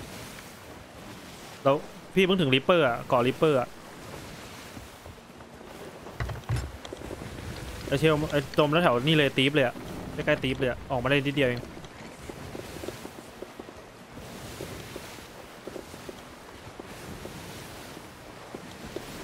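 Waves wash steadily against a wooden ship's hull.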